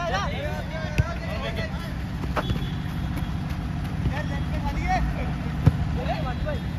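A football is kicked with a thump.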